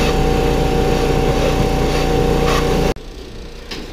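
A pressure washer sprays water with a loud, steady hiss and motor hum.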